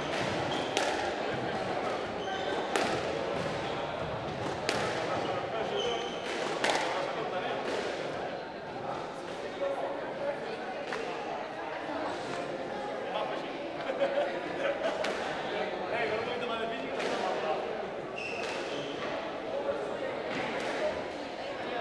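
A squash ball smacks sharply against the court walls again and again, echoing in a large hall.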